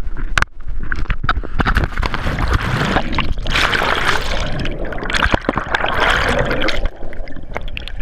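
Bubbles churn and roar underwater.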